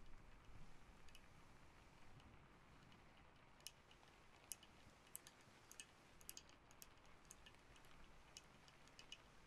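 A candle wick crackles softly up close.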